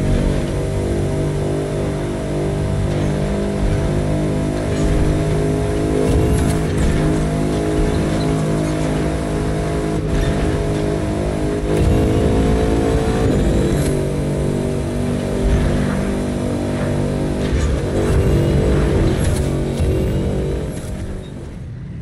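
A powerful car engine roars steadily at high speed.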